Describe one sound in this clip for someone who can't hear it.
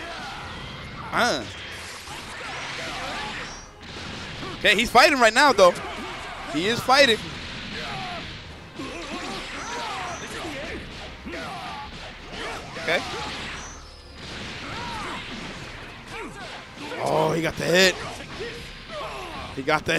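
Game fighters clash with punches, blasts and energy beams.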